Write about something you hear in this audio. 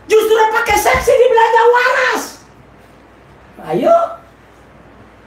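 A man shouts loudly and forcefully nearby.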